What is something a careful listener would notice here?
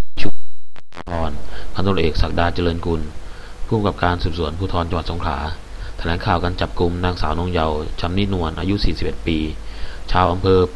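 A man speaks steadily nearby.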